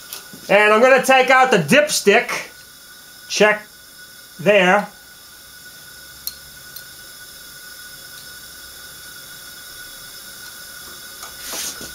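A wrench clinks against engine metal.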